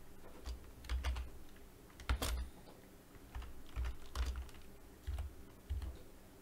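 Keys clack on a computer keyboard in quick bursts.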